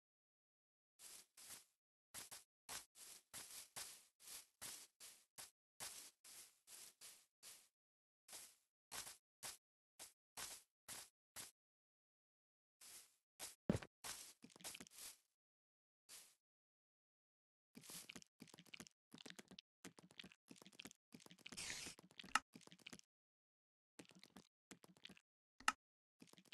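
Footsteps crunch on grass in a quick, uneven rhythm.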